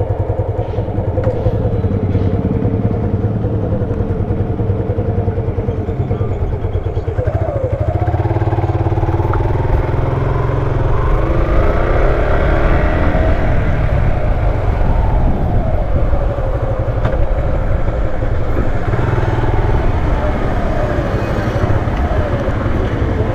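A motorcycle engine rumbles close by, then revs up and down in pitch as the bike rides off.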